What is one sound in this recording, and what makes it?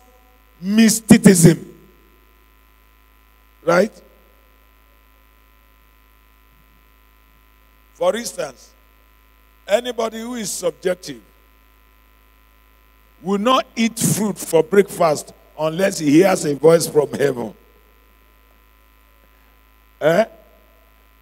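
A man preaches into a microphone with animation, in short bursts with long pauses.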